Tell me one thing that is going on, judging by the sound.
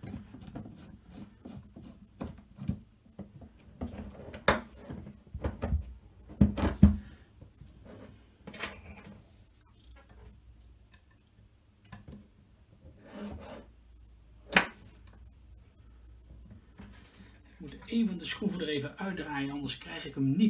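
Metal parts clink and knock as hands handle a frame.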